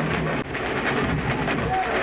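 Drums beat loudly.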